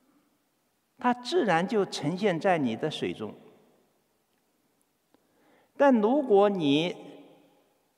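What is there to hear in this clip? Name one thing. A man chants slowly and melodically in an echoing hall.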